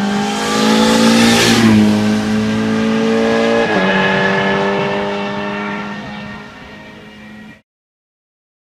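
A rally car engine roars loudly as the car speeds past, then fades into the distance.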